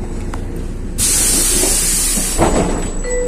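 Tram doors open with a loud hiss of air.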